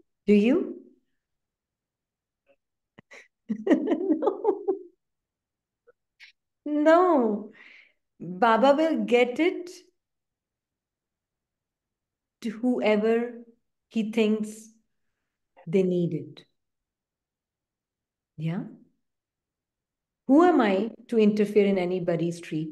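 A woman speaks calmly in short phrases over an online call.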